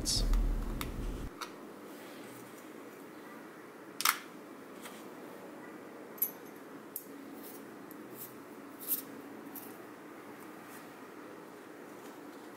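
Small metal and glass parts click and tap together as they are handled.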